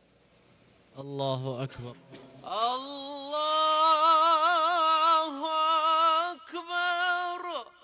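A man chants in a long, melodic voice over loudspeakers, echoing across a wide open space.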